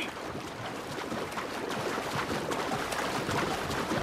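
Water splashes with swimming strokes.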